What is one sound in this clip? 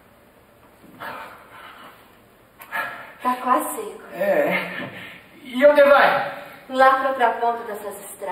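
A young man sings in reply in a large echoing hall.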